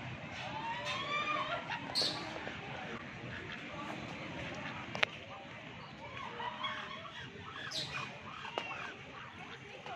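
A flamingo's foot stirs and splashes shallow water.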